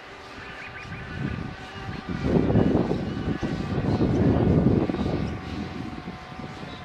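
Wind gusts roar across the microphone outdoors.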